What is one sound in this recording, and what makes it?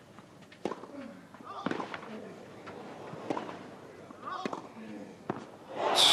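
A tennis player grunts with each shot.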